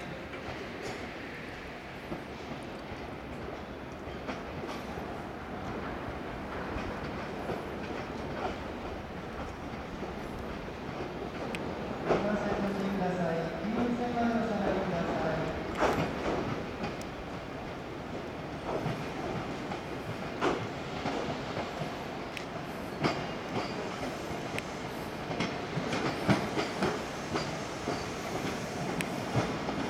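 A train rumbles steadily along the tracks, moving slowly away.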